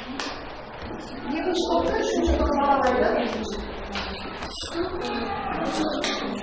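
Children talk and chatter in a room.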